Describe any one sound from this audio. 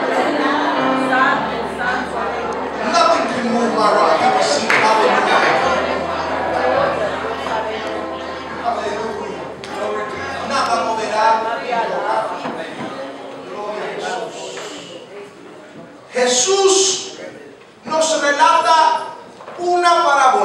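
A man sings passionately into a microphone, amplified through loudspeakers in a large echoing hall.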